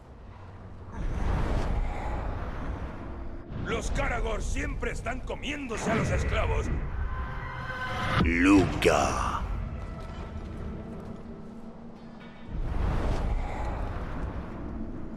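A ghostly whoosh swells and fades.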